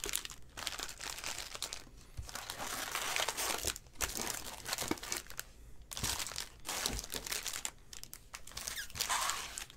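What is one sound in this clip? Foil packs rustle and slide against each other in a cardboard box.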